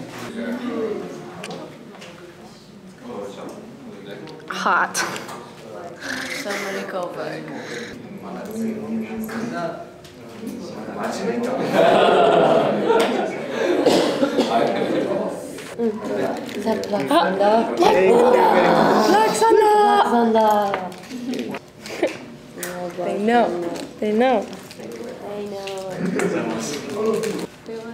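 Several young people talk and chatter in a room.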